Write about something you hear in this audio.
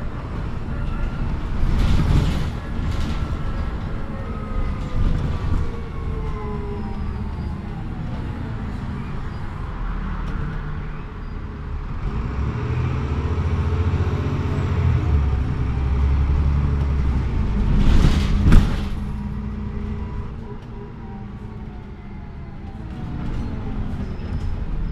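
A bus engine hums and whines steadily, rising and falling in pitch as the bus drives.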